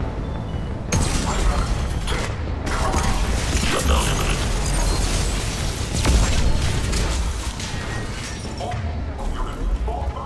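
Gunshots and explosions crack and boom in quick bursts.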